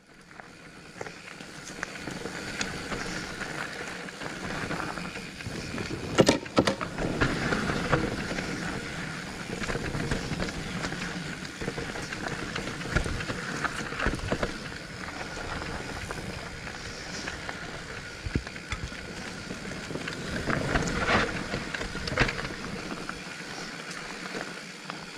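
A mountain bike rattles and knocks over bumps on a dirt trail.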